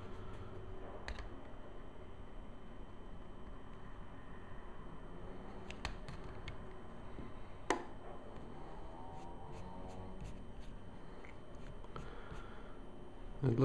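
A small screwdriver clicks and scrapes against metal screws.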